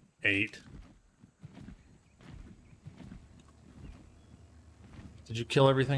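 Large leathery wings flap and whoosh in the air.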